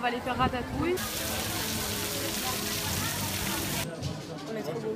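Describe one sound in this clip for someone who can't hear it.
Water splashes in a fountain.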